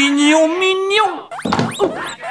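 A young man sings out loudly in a drawn-out voice.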